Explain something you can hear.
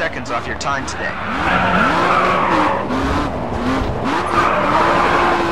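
Tyres screech loudly as a car slides.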